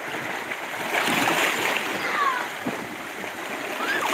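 A stone splashes into the water.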